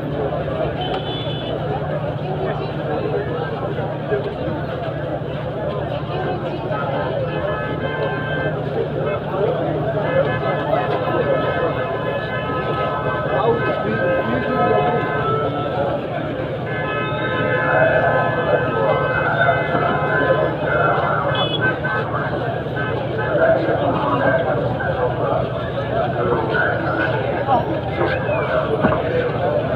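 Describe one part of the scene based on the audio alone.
A large crowd of men and women talks and calls out all around, outdoors.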